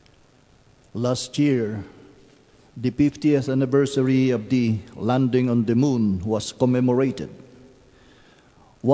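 An older woman speaks calmly through a microphone.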